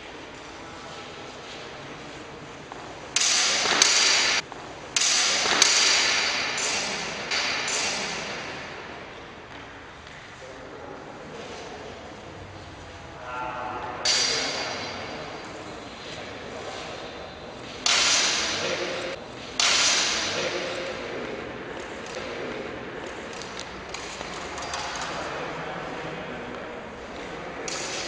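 Footsteps shuffle and squeak on a hard floor.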